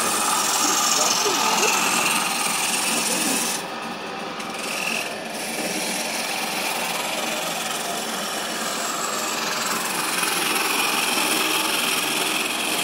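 A wood lathe whirs steadily as it spins.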